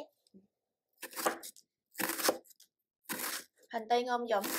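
A knife slices through an onion and taps on a cutting board.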